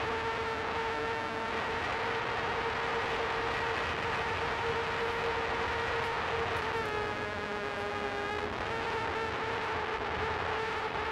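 A handheld electronic instrument drones with steady, shifting tones.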